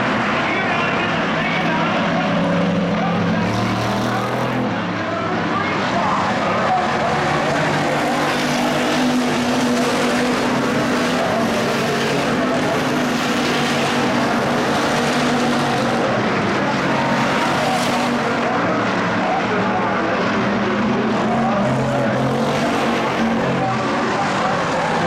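A pack of V8 hobby stock cars roars around a dirt oval at full throttle.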